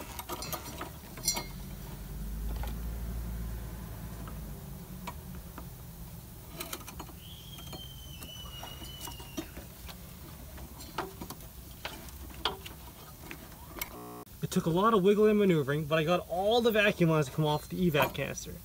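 Metal parts click and clink under hands working on an engine.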